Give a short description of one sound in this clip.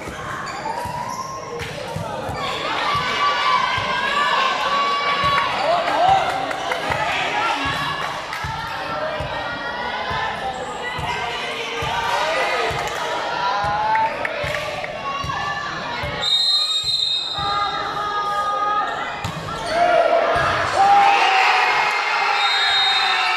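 A crowd of young people chatters and cheers in a large echoing hall.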